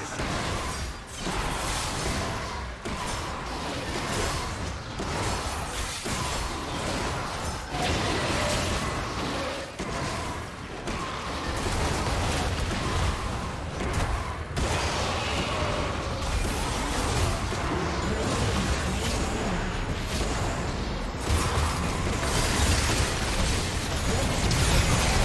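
Spells crackle and blasts clash amid fast fighting sounds.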